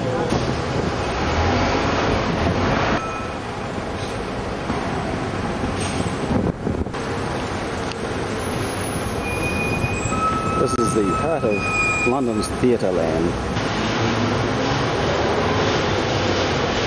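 City traffic rumbles steadily outdoors.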